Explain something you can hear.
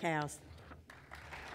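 A woman speaks briefly into a microphone.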